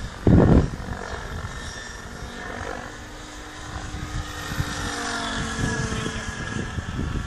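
A small model airplane engine drones in the distance.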